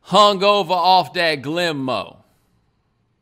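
A man speaks with animation close into a microphone.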